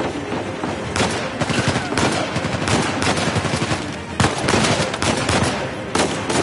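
Pistol shots ring out sharply in a large echoing hall.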